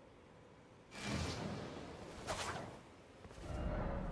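A shimmering game chime rings out and fades.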